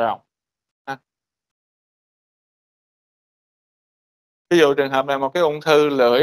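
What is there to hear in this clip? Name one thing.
A man lectures over an online call, pausing between phrases.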